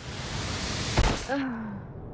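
A body hits the ground with a heavy thud.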